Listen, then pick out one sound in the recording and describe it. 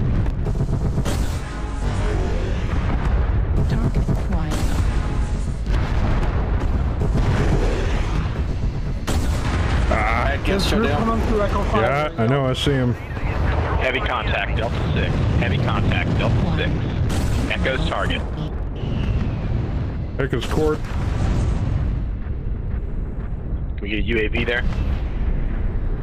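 Explosions rumble in a game.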